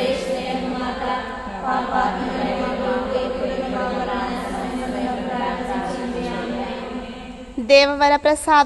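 A group of women recite a prayer together in a low murmur.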